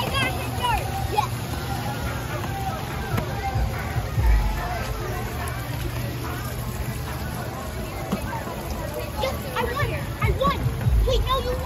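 Children call out in high voices nearby.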